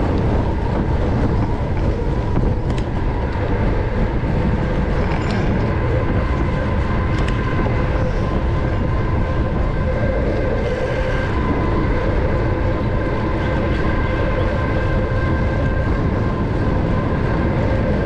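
Tyres rumble steadily on a paved road.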